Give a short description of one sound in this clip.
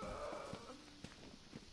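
A short chime rings out.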